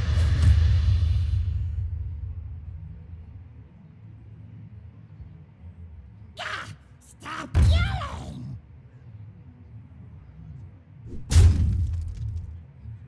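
A deep thud booms in a game.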